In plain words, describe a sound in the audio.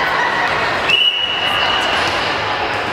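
A referee's whistle blows once.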